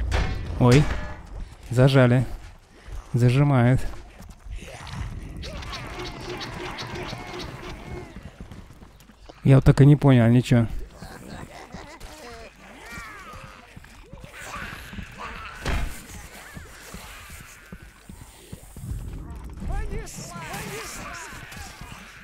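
Blades clash and strike during a fight.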